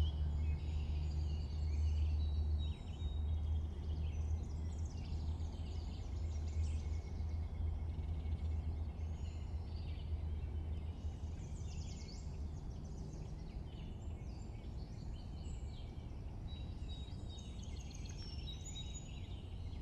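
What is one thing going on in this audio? A small boat glides steadily through water with a low rumble.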